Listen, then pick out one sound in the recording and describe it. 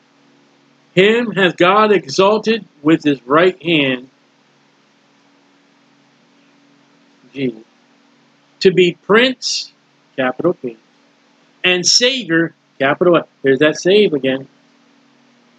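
A middle-aged man reads aloud calmly through a webcam microphone, with pauses.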